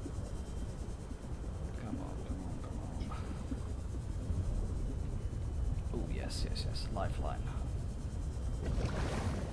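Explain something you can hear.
A small underwater vehicle's engine hums low and steady.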